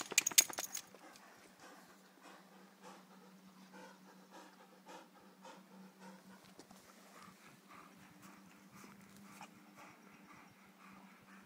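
A large dog pants rhythmically close by.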